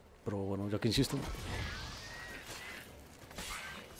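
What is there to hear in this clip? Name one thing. Flames burst with a roaring whoosh.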